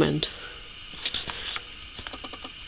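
A paper page rustles as it is turned.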